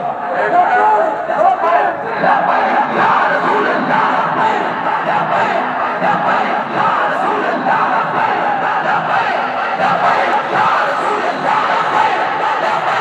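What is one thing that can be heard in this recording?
A huge outdoor crowd of men murmurs and chatters steadily.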